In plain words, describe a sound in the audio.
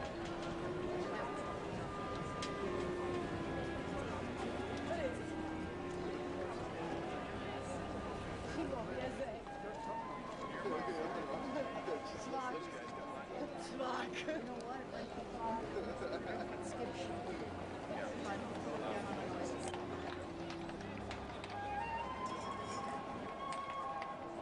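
Horse hooves clop on cobblestones.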